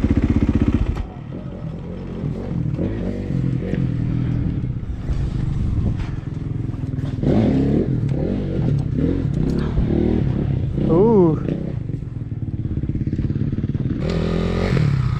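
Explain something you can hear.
A dirt bike engine idles with a low, uneven putter.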